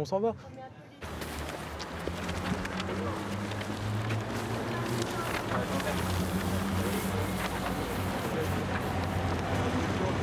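A crowd murmurs and chatters outdoors at night.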